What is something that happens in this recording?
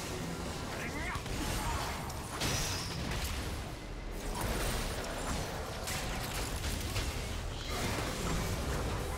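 Game weapons clash and strike repeatedly.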